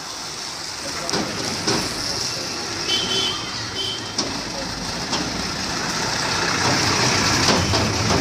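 A truck engine rumbles as the truck approaches and passes close by.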